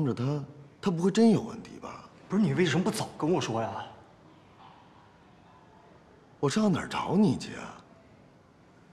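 A man speaks anxiously and urgently, close by.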